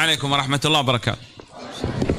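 A man speaks into a microphone in an echoing room.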